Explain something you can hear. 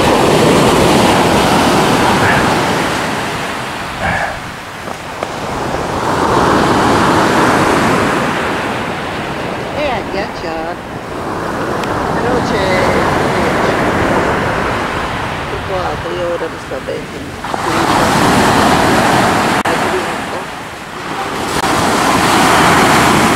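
Sea waves break and wash up on a pebbly shore in surging rushes.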